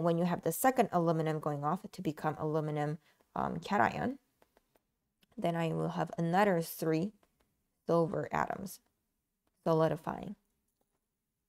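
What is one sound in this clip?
A young woman explains calmly and closely into a microphone.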